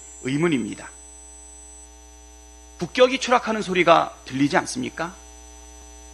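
A man speaks formally into a microphone, reading out in short phrases.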